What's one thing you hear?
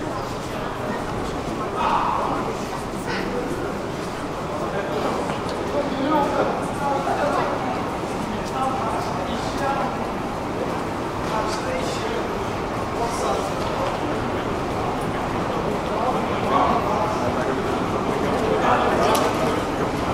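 Footsteps tap on a stone floor nearby.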